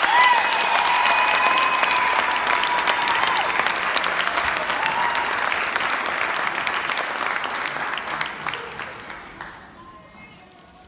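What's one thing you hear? An audience claps and cheers loudly, then the applause dies away.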